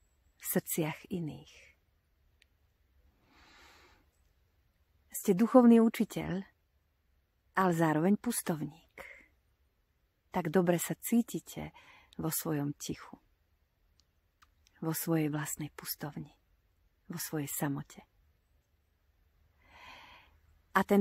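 A middle-aged woman talks warmly and close up, with pauses between phrases.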